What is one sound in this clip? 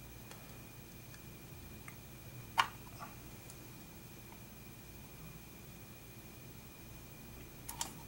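Metal test probes tap and click against a circuit board.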